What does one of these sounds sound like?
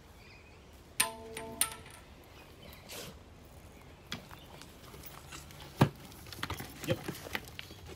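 A metal tool clanks against a plate.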